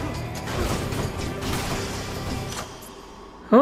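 Game combat sounds clash and crackle with slashing blows.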